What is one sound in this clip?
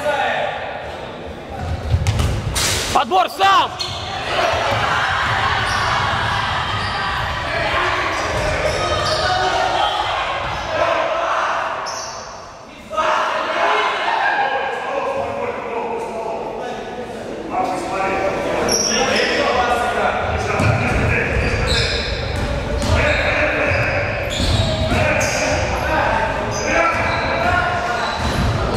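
A crowd of young spectators cheers and shouts in a large echoing hall.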